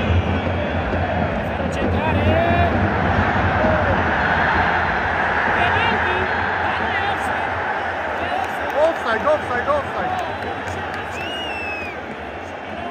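A large stadium crowd roars and chants loudly all around.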